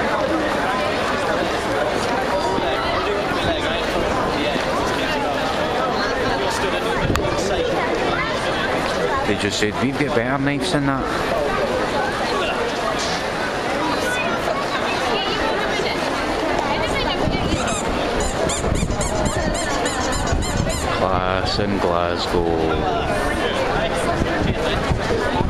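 A crowd of people chatters outdoors in a busy street.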